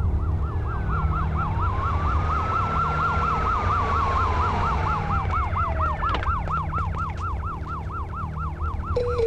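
A siren wails rapidly up and down.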